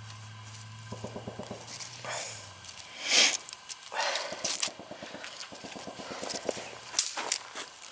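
Dry twigs rustle and snap as they are handled.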